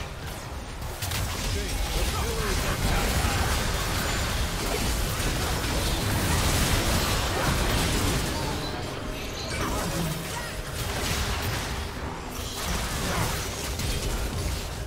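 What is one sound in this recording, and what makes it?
Magic blasts and clashing spell effects crackle and boom during a fight.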